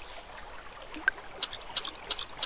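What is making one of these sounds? A fish tugs at a fishing float with a small splash.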